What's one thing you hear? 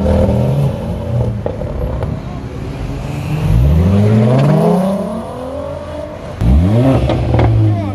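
A car accelerates away with a roaring engine.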